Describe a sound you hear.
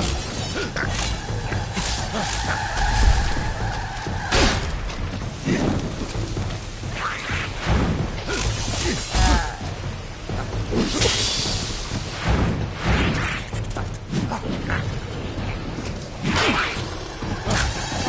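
Magic blasts burst and whoosh.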